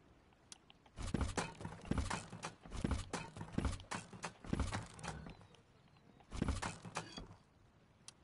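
A hammer strikes a wall with heavy thuds.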